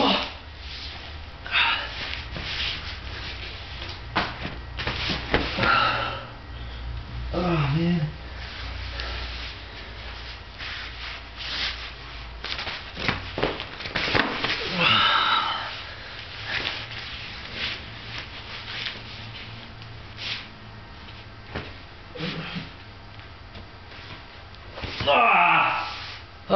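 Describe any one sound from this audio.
Hands and feet thump and scuff on a hard floor.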